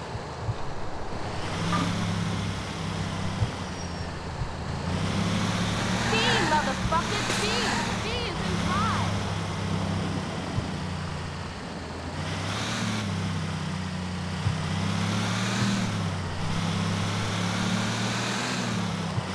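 A truck engine rumbles steadily and revs up and down.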